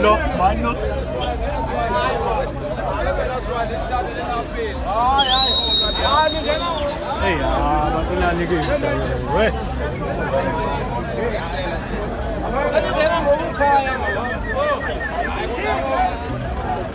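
A crowd of men talks and shouts loudly nearby, outdoors.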